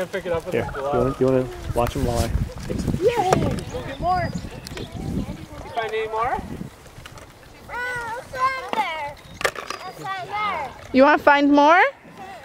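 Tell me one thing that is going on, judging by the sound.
Young children chatter and squeal nearby outdoors.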